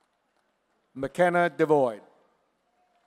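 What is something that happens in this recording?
A woman announces a name loudly through a microphone.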